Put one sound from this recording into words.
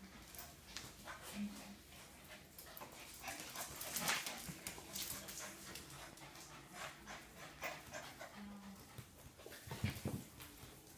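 Paws scratch and patter on a hard floor.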